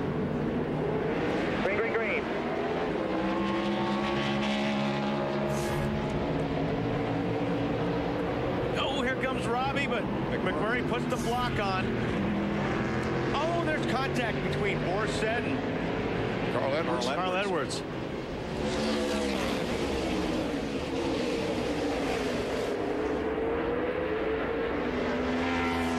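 Many race car engines roar loudly, rising and falling in pitch as the cars speed past.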